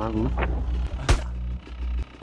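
A pistol shot cracks.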